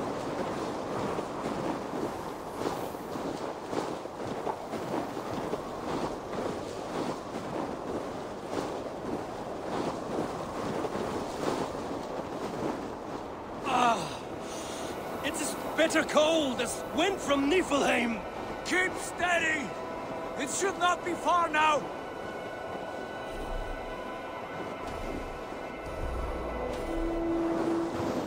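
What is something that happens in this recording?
Wind howls steadily across open snow.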